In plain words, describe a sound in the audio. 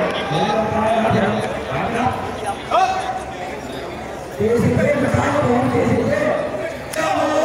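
A man speaks loudly and with animation nearby.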